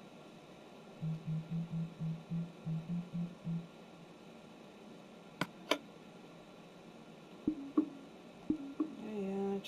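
Short game menu blips sound as a selection moves.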